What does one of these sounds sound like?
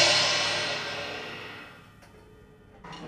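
A cymbal crash rings out and slowly fades.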